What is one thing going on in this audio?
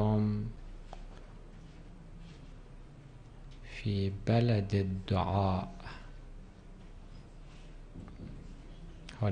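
A middle-aged man speaks slowly and solemnly into a microphone.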